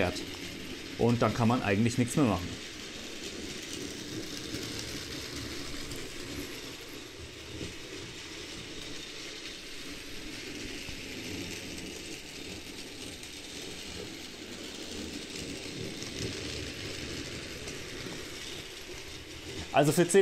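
A toy train rattles steadily along its track.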